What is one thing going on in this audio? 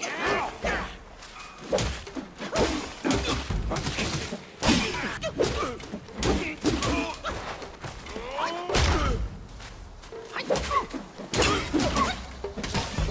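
Swords clash and ring in quick, sharp strikes.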